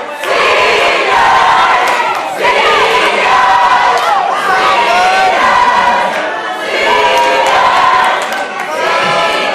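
A group of young women chants loudly in unison.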